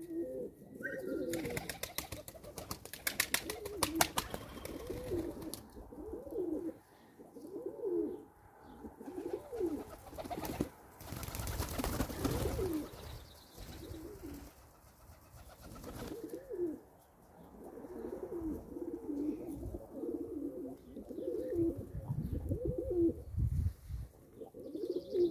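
Pigeons coo softly and repeatedly nearby.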